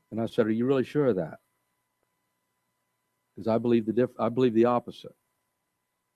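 An elderly man speaks with emphasis into a microphone, pausing between phrases.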